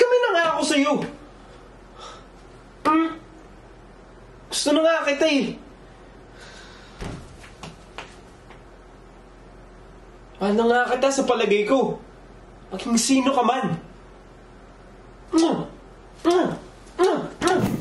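A young man speaks expressively and dramatically nearby.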